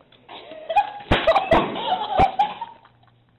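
A chair clatters and crashes to the floor.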